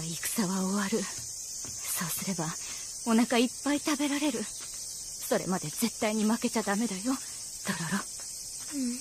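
A young woman speaks softly and gently.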